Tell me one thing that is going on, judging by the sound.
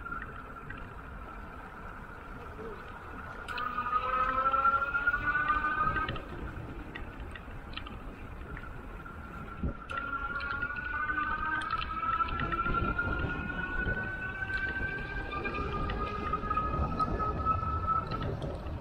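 Tyres roll steadily over smooth pavement.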